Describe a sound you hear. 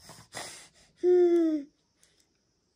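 A baby squeals loudly close by.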